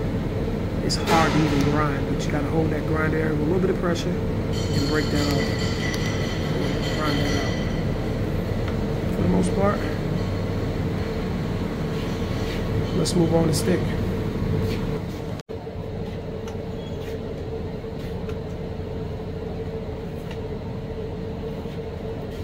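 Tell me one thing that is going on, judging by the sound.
A ventilation fan hums steadily.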